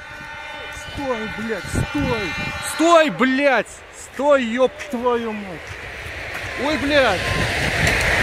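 A train horn blares in long wavering blasts.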